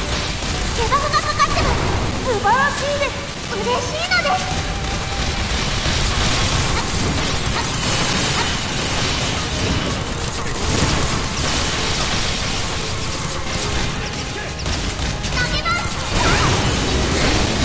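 Weapons clash and energy blasts boom in a noisy, fast fight.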